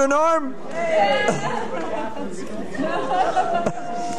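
A woman laughs and cheers close by.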